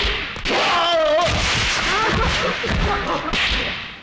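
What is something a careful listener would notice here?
A body crashes onto a hard floor.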